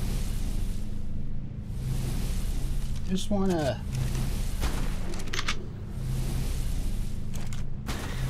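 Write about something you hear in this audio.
Lava bubbles and rumbles steadily.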